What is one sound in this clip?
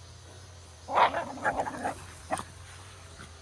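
A dog barks a few times.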